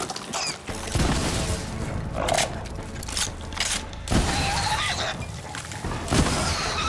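A gun fires heavy, booming shots.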